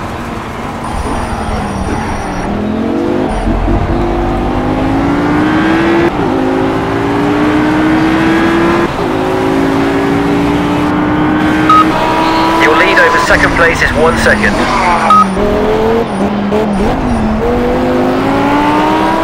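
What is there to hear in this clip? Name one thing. A sports car engine revs high and shifts through gears.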